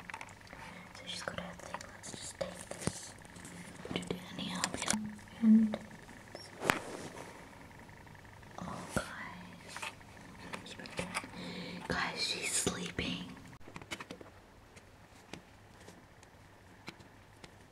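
Soft fabric rustles and brushes close to the microphone.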